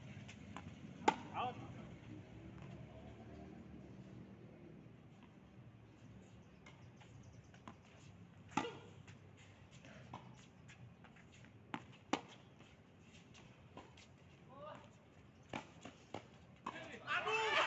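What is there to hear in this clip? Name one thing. Tennis rackets strike a tennis ball outdoors.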